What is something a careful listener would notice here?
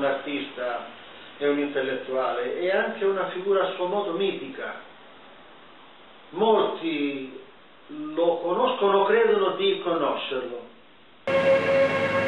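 An elderly man speaks calmly and thoughtfully, close by.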